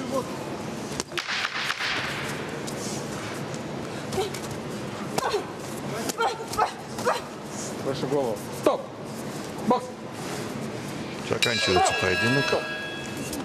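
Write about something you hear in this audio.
Boxing gloves thud against each other in quick punches.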